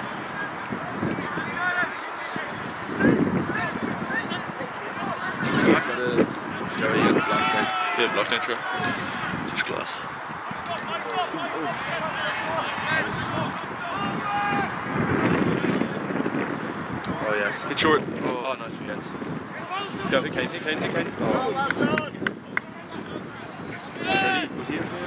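Young men call out to each other loudly.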